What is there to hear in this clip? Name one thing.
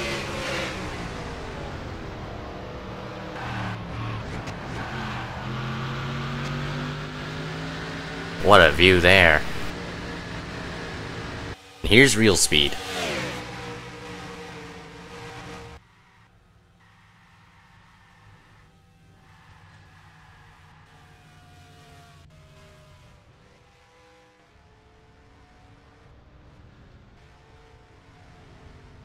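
Racing car engines roar at high speed.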